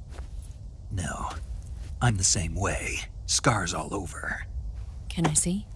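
A man answers in a low, gravelly voice.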